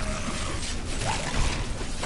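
A fireball bursts with a whoosh.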